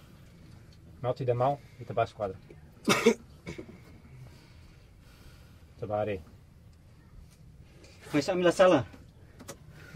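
A young man speaks up nearby.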